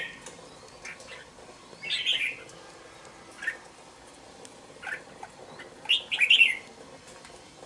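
A small caged bird chirps in short bursts, close by.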